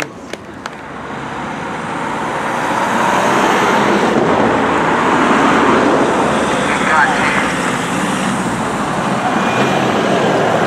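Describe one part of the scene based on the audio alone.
Vehicle engines rumble as a convoy drives past close by.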